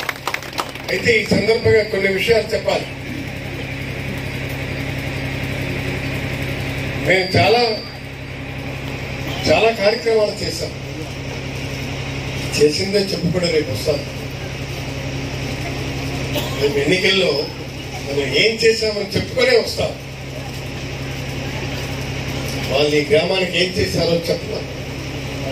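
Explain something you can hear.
A man speaks forcefully into a microphone through a loudspeaker, in short bursts with pauses.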